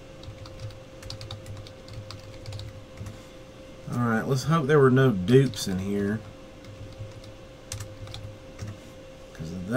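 Computer keys click softly.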